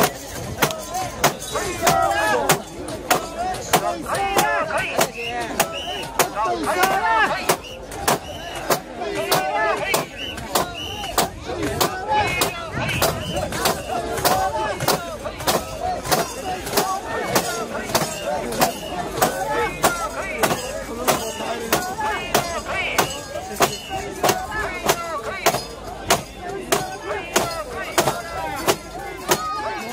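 A large crowd of men chants loudly and rhythmically outdoors.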